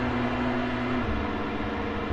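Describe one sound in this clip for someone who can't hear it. A vehicle engine drops in pitch as it changes gear.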